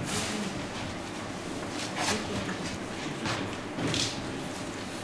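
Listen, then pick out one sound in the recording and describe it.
A metal tin lid clicks as it is pried open.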